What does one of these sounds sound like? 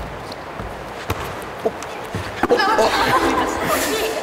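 A volleyball is struck and bounces on a wooden floor in a large echoing hall.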